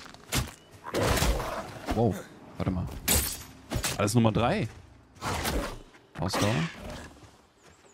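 A wooden club thuds against a creature.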